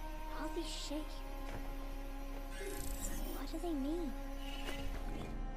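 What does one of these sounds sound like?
A young girl speaks softly and wonderingly.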